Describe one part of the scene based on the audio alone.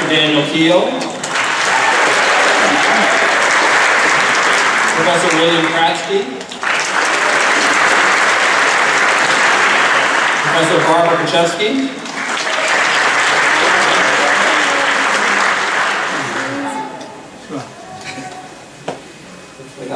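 A man reads out names over a loudspeaker in a large echoing hall.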